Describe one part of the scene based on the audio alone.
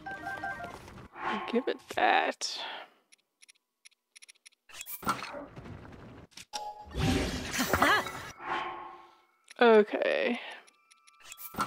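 Short electronic clicks and chimes sound as a game menu is browsed.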